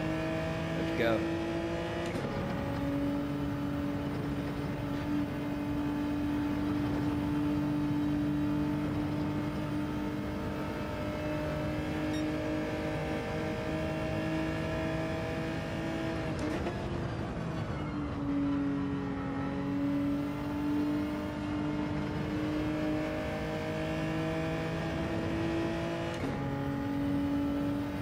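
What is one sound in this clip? A racing car engine roars steadily at high revs, shifting gears and dropping in pitch when braking for corners.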